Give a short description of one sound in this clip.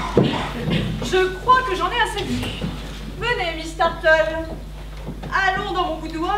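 A young woman speaks loudly and with animation on a stage, in an echoing hall.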